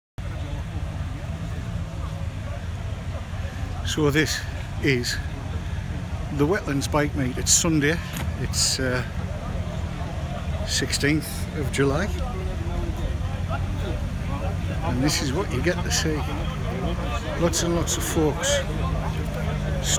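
A crowd of men chatter and talk nearby outdoors.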